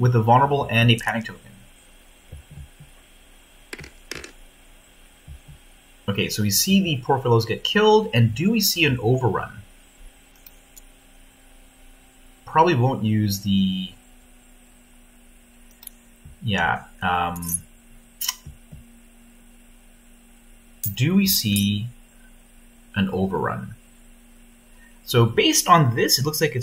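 A man talks calmly and close to a microphone, in short bursts.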